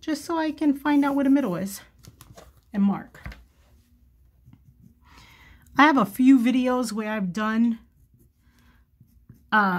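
A pencil scratches lightly on cloth.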